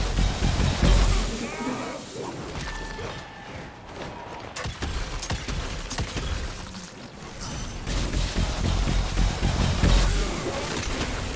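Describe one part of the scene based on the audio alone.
Deep booming blasts rumble.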